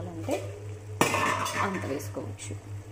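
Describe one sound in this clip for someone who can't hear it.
A spoon scrapes and stirs in a metal pan.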